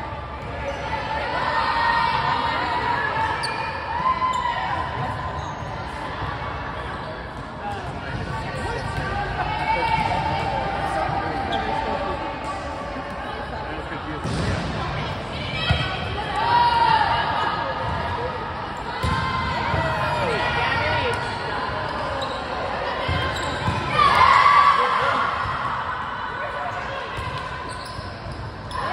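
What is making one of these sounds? Young girls call out and shout to each other in a large echoing gym.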